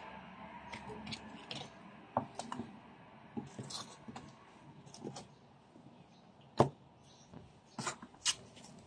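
Hands move plant pots, with soft knocks and scrapes.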